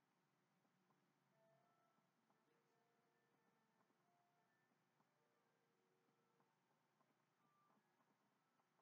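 Soft video game music with light chiming notes plays quietly from a television.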